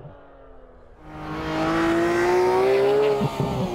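A sports car engine roars loudly close by, its pitch climbing steadily as it accelerates.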